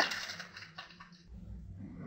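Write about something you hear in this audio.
A lid screws onto a jar with a light scrape.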